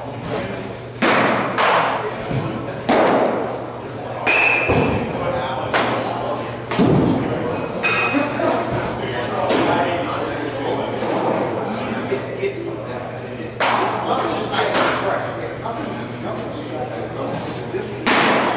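Baseballs smack into a catcher's mitt in an echoing indoor hall.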